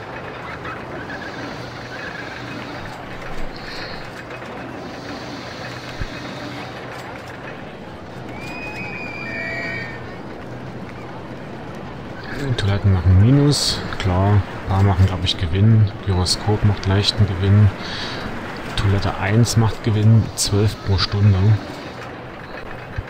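A roller coaster train rattles along its track.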